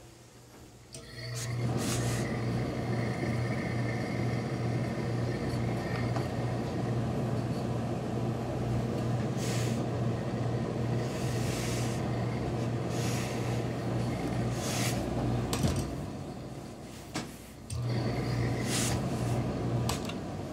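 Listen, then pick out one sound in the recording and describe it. A steam iron hums and hisses steadily.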